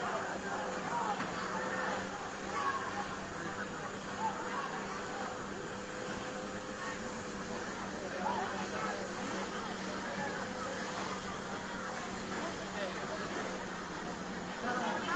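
A large crowd of men and women talk and shout excitedly nearby, outdoors.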